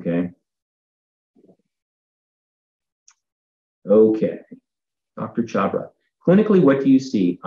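An older man speaks calmly over an online call, pausing between phrases.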